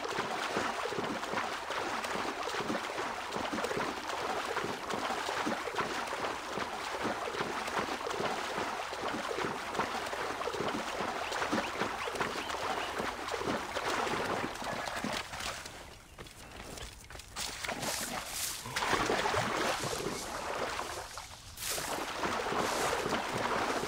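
A swimmer splashes and paddles through water.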